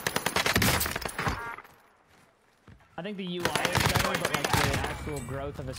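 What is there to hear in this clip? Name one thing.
Rapid gunfire bursts out in quick, sharp shots.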